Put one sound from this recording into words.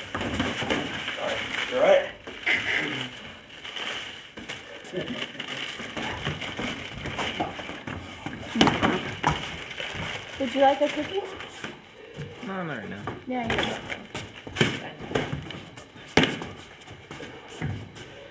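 Shoes scuff and shuffle on a hard floor.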